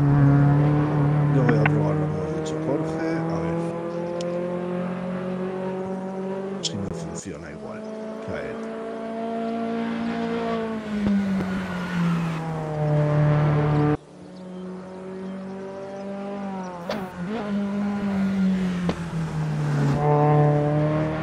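A racing car engine drones loudly, its pitch sweeping up and down as it shifts gears.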